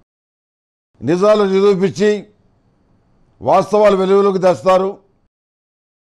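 An elderly man chants in a steady, drawn-out voice close to a microphone.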